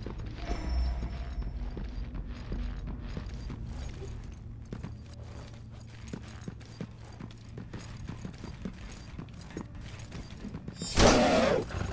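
Footsteps clank on a hard metal floor.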